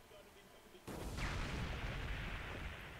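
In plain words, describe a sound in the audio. A fiery blast roars and hisses.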